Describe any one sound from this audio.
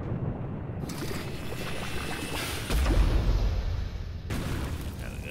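A cannon blasts with a hissing burst of steam and a deep thump.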